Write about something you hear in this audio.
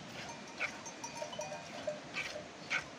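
Sheep bleat nearby.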